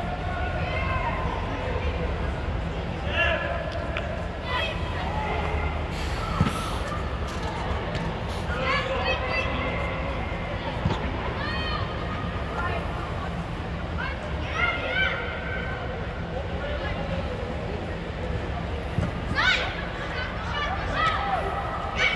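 Children shout across a pitch in a large echoing hall.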